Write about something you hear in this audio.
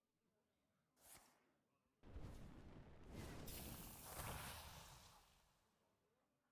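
Game sound effects whoosh and crash loudly.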